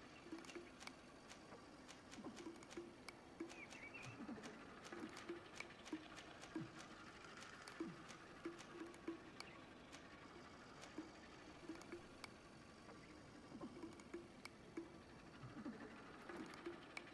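Soft interface clicks tick as a menu list scrolls.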